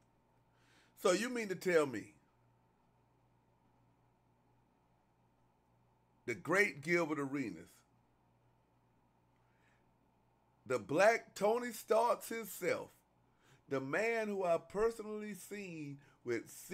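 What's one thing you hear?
A man speaks into a microphone in short, animated bursts.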